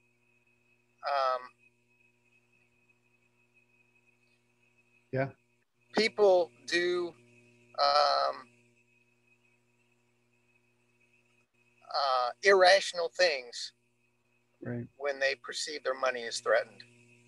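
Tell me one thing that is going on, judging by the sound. Several adults talk by turns over an online call, in short bursts with pauses.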